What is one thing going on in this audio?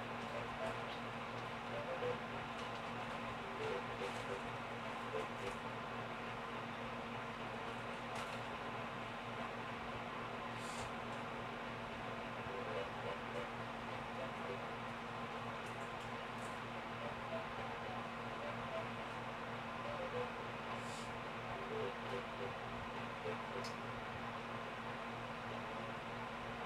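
Soft, plinking game music plays quietly through a television speaker.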